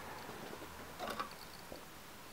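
A small box is picked up off a wooden desk with a soft scrape and tap.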